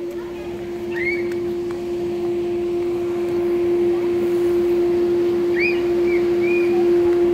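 A toddler babbles softly nearby.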